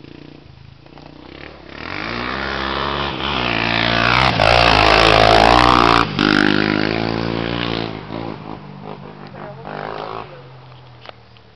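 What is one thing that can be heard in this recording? A quad bike engine revs as it speeds past and fades away.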